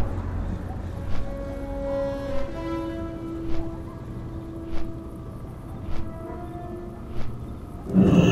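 Large wings flap in slow, regular beats.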